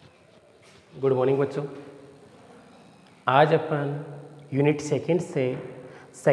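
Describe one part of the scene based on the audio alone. A middle-aged man speaks loudly and clearly, as if teaching, in a room with a slight echo.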